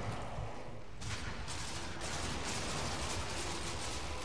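A submachine gun fires rapid bursts of shots.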